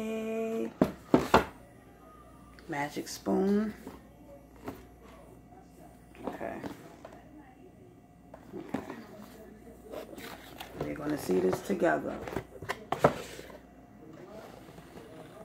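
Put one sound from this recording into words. A cardboard box rustles and scrapes as it is opened.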